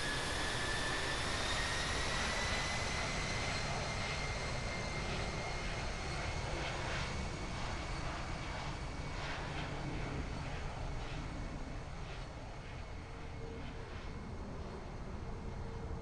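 Aircraft tyres rumble and thump over a runway.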